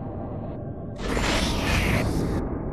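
A loud blast of flame bursts out.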